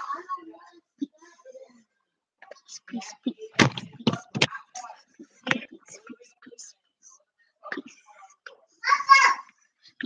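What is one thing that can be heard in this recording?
Hands bump and rub against the microphone.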